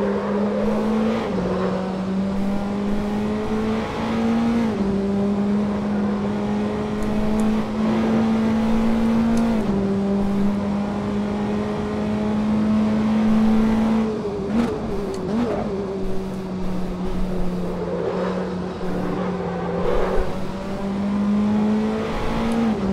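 A racing car engine roars loudly, its pitch dropping and climbing with each gear change.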